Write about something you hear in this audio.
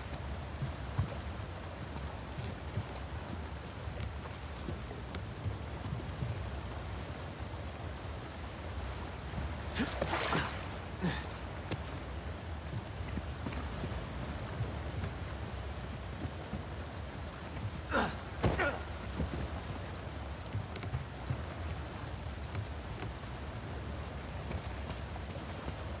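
Footsteps crunch over grass and debris.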